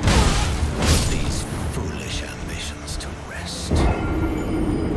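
A huge beast strikes with heavy, crashing blows.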